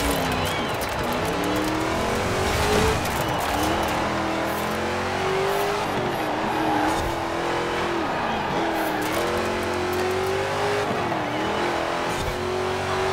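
An engine revs hard, rising and dropping in pitch as the gears shift.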